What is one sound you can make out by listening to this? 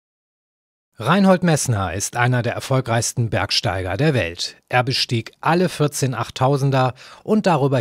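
A middle-aged man speaks calmly and close up.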